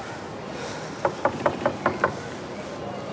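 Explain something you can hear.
A woman knocks several times on a wooden door.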